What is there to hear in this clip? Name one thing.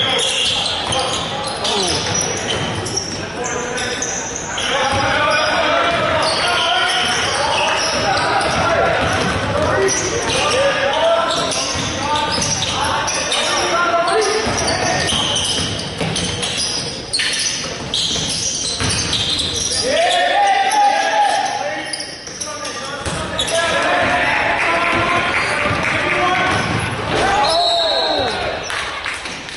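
Young men call out and shout during play.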